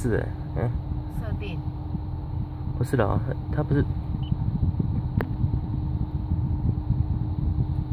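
A car engine hums with a low road rumble inside the cabin.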